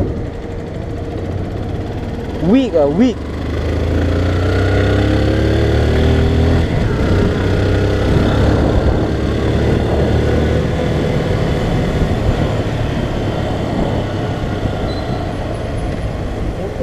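A motorcycle engine hums and revs up as the bike rides along.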